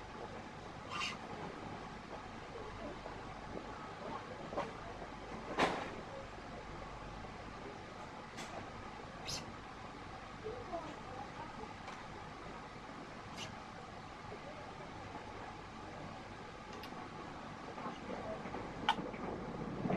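Small clicks and taps come from a stringing machine's clamps.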